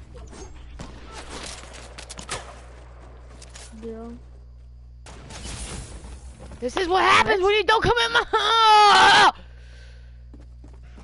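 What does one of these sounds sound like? A rifle fires a single shot.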